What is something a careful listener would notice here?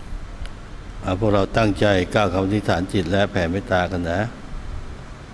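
An elderly man chants slowly into a microphone.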